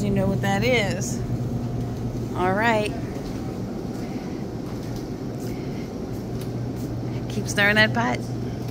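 A refrigerated display case hums steadily.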